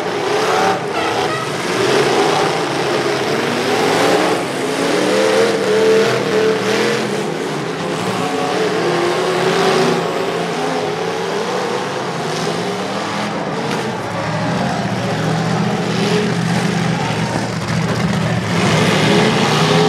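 Car engines rev and roar loudly outdoors.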